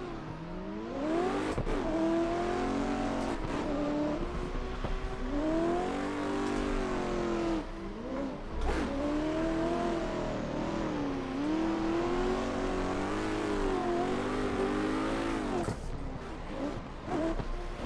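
Tyres squeal and hiss in a long slide.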